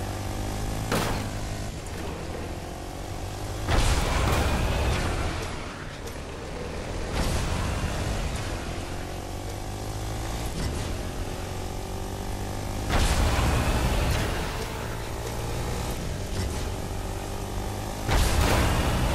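Vehicles crash and thud against each other.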